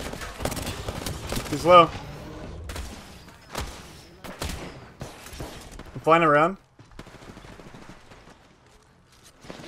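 A young man speaks with animation into a microphone close by.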